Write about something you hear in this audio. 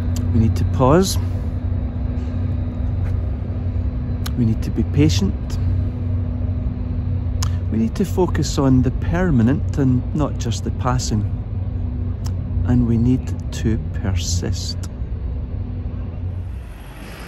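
An older man talks up close, outdoors.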